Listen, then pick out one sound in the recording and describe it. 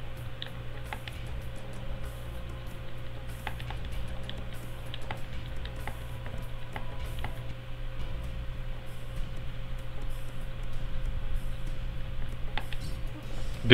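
Short menu clicks tick as letters are picked one by one.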